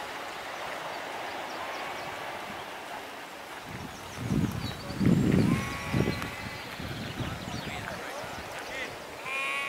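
Wind blows over open ground outdoors, gusting against the microphone.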